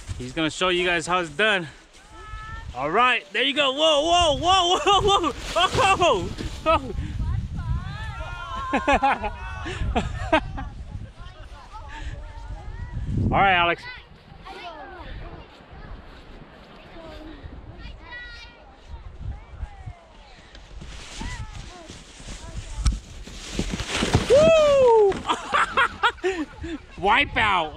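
Children shout and squeal with excitement close by.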